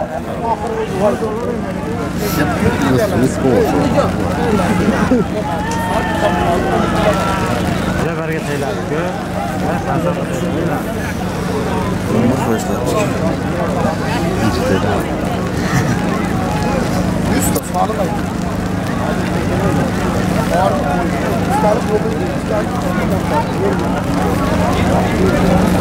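A large crowd of men shouts and calls out outdoors.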